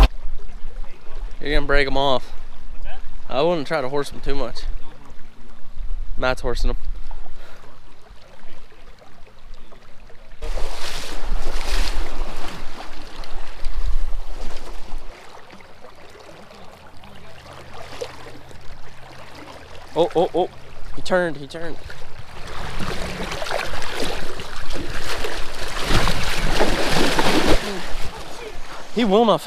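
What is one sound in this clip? Shallow river water babbles and rushes.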